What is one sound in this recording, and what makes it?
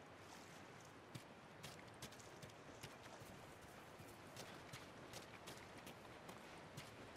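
Footsteps crunch on a dirt path at a steady pace.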